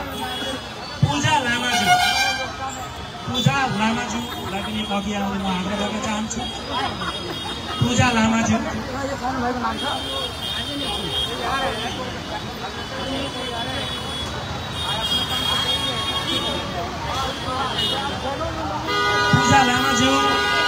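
A middle-aged man speaks steadily into a microphone through a loudspeaker, outdoors.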